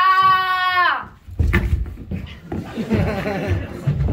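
A body thuds onto the floor.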